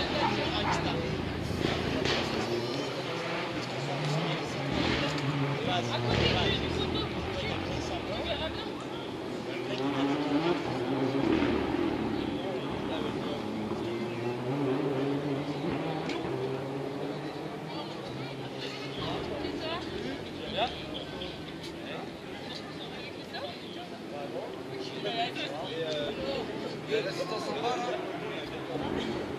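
A crowd of spectators chatters outdoors in the distance.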